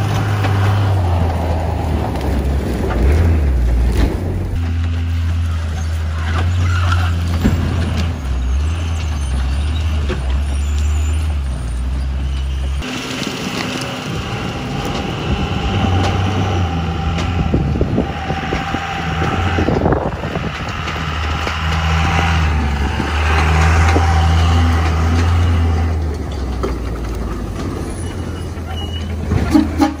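A pickup truck's diesel engine rumbles and revs as it pulls a trailer.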